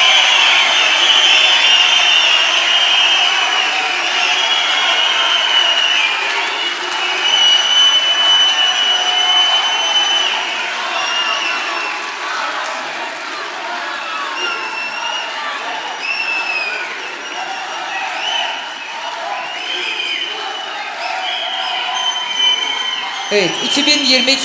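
People in a crowd whistle loudly again and again.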